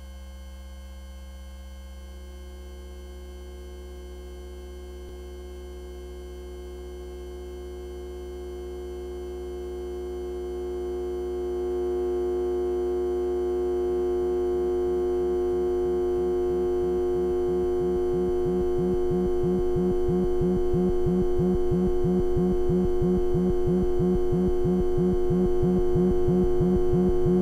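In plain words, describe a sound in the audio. A modular synthesizer drones with a steady, slowly swelling tone.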